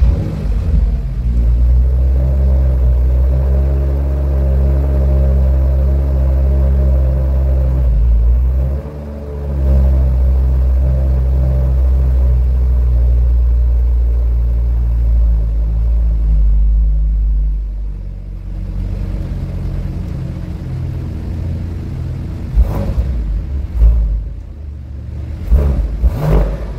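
A car engine idles with a deep, steady rumble close by.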